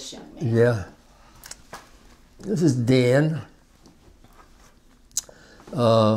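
An elderly man speaks calmly and slowly, close by.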